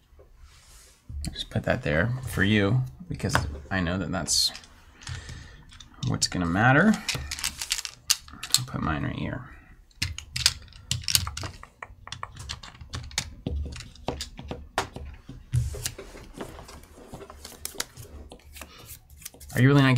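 Game pieces click and tap on a board.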